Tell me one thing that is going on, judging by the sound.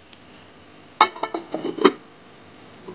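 A ceramic lid clinks onto a pot.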